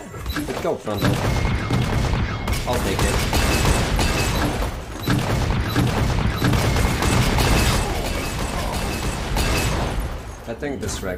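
Game spell effects crash and boom.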